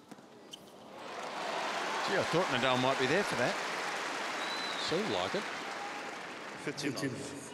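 A crowd applauds and cheers loudly.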